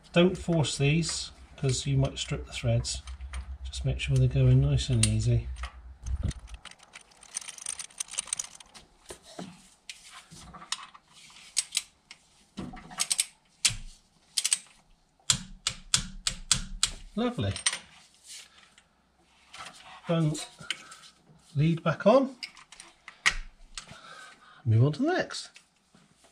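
A man talks calmly and explains, close to a microphone.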